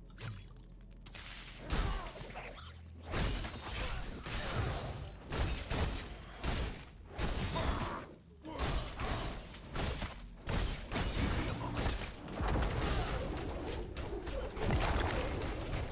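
Spell blasts and weapon hits crackle and thud in quick succession.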